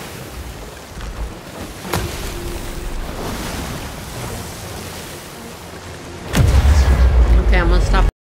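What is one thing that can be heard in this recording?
Wind howls steadily across the open sea.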